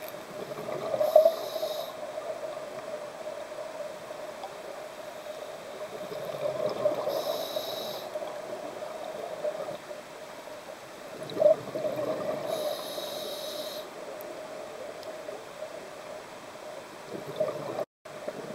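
Air bubbles gurgle and burble as they rise underwater.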